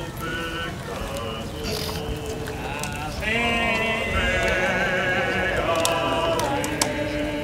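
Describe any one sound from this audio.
A crowd of men and women sings a slow hymn together outdoors.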